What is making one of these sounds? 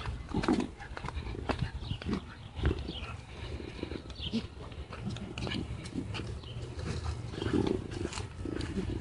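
Footsteps scuff along a path.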